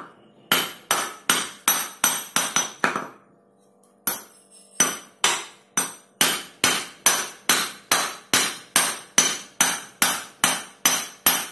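A hammer strikes a metal punch in quick, steady ringing blows.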